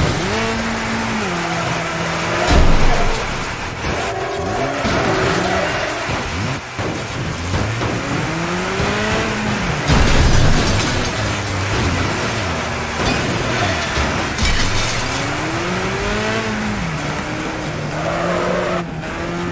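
A car engine revs up and down, shifting gears.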